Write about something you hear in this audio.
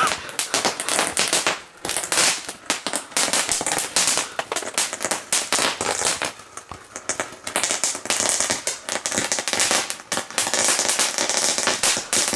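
Fireworks hiss and fizz as sparks shoot up.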